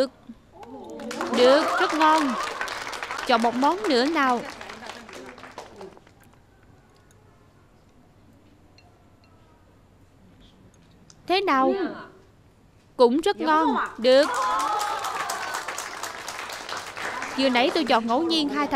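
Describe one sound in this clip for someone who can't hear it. A small group of women clap their hands and cheer.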